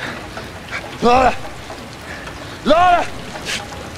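A man shouts out loudly and urgently nearby.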